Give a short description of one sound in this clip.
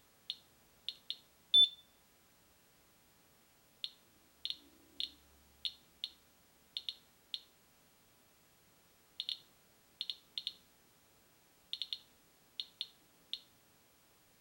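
A radiation meter gives short, sharp chirps at uneven intervals.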